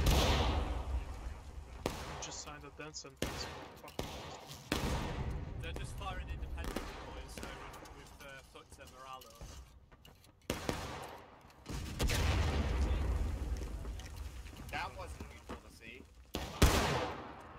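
Rifle shots crack nearby, one after another, with a rolling echo.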